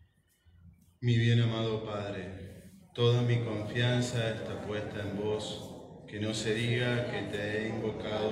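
A man chants aloud in a small echoing room.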